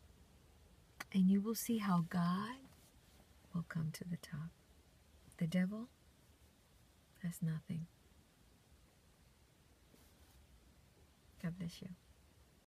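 A young woman speaks animatedly and close by, in short bursts with pauses.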